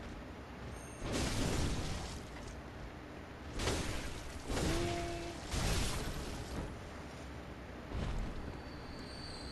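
Heavy weapon blows land with loud, sudden crashes.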